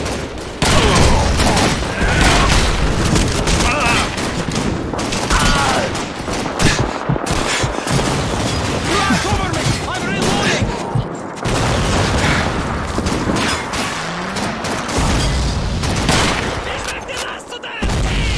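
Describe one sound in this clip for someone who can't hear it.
A rifle fires sharp single shots close by.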